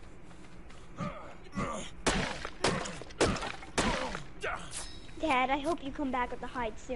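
Fists thump against a tree in quick blows.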